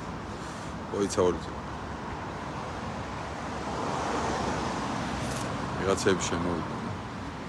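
A man speaks briefly in short bursts close by.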